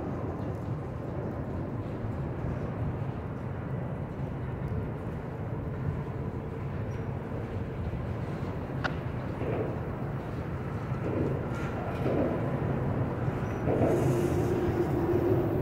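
Freight cars roll slowly past on steel rails with a low rumble.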